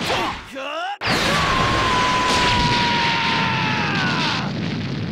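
A surging energy blast roars steadily, then fades.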